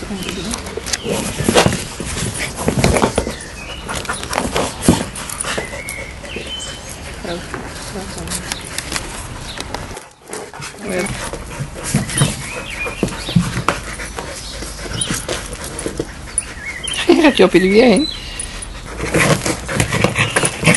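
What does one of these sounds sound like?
Dogs scuffle and thump a rubber ball on paving outdoors.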